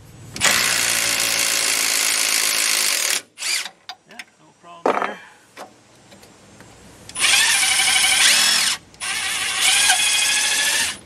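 A cordless impact wrench buzzes and hammers in loud, long bursts.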